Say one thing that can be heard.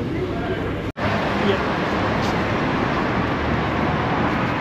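Cars drive past on a busy street outdoors.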